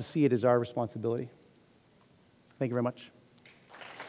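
A man speaks into a headset microphone in a large hall.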